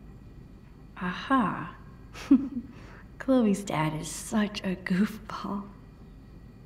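Another girl answers excitedly.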